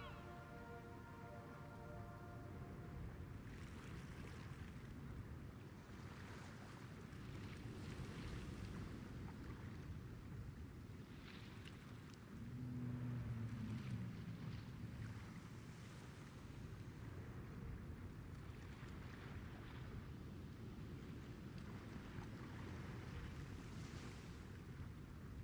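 Water laps gently against a ship's hull.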